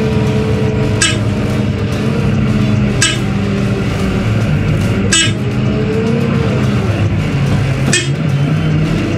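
Metal clanks sharply a few times.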